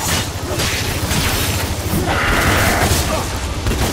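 Loud explosions burst and boom.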